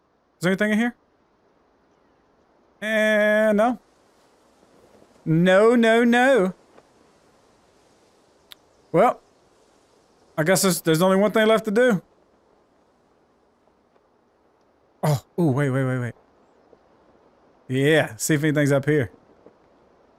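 A man talks in short bursts, close to a microphone.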